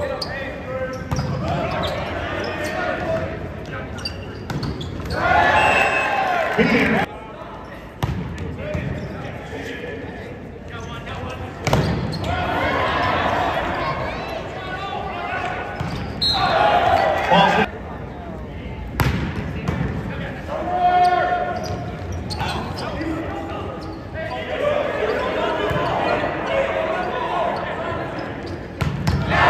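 Spectators in a large echoing gym cheer and chatter.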